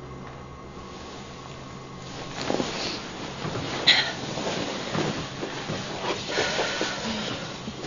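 Bedding rustles as people shift in bed.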